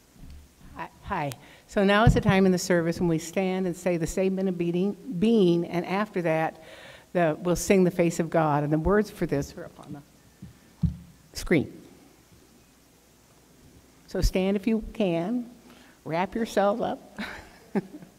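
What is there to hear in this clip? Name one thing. A woman speaks calmly into a microphone in a large echoing hall.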